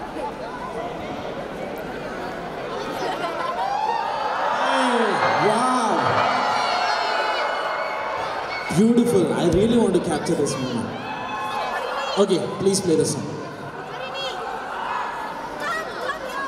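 A young man sings through a microphone over loudspeakers.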